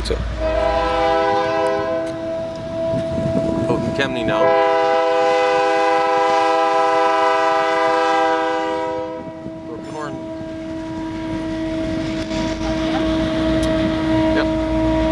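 A train horn blares loudly in long blasts.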